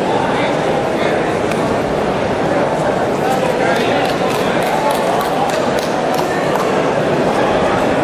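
A large crowd chatters and murmurs steadily in an echoing hall.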